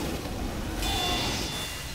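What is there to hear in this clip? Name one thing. A flamethrower roars and crackles.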